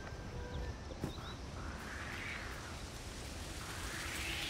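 Footsteps swish softly through grass.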